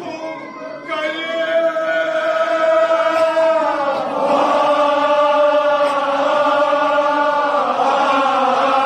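A crowd of men chants together in response.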